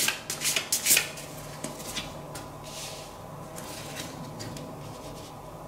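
Playing cards slide and tap softly on a table.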